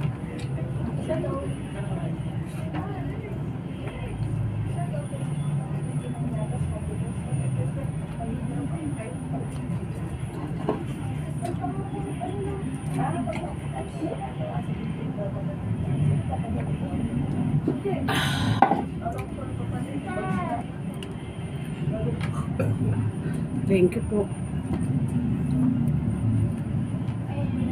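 A woman talks softly between bites.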